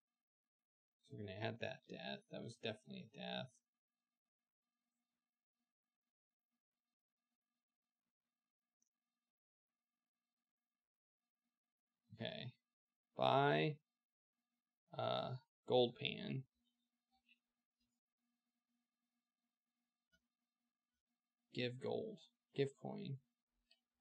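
A man talks casually through a headset microphone, in short bursts.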